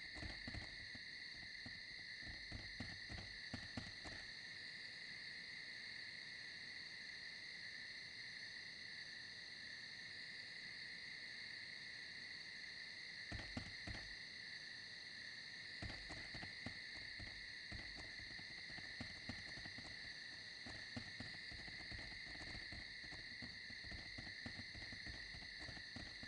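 Footsteps tread steadily over soft ground.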